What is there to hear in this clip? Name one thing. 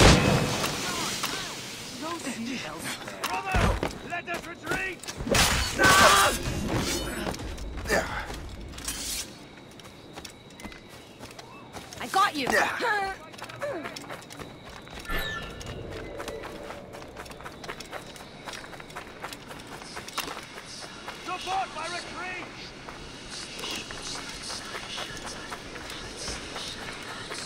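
Footsteps run quickly over soft ground.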